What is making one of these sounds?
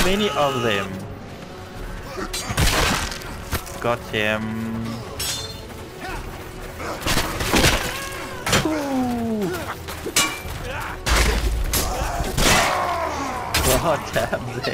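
Men shout and grunt in battle.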